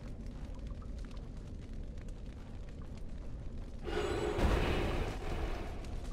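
A magic spell crackles and shimmers.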